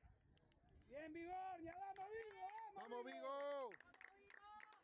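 A man close by shouts loudly.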